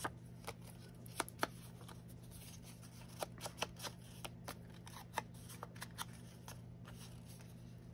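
An ink blending tool dabs and taps softly against a paper tag, close by.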